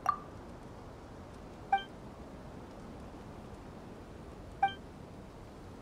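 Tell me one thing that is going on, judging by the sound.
A short bright chime rings as dialogue text advances.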